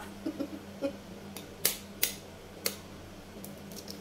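An egg cracks against a bowl.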